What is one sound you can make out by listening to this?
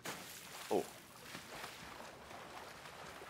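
Water sloshes gently as someone swims.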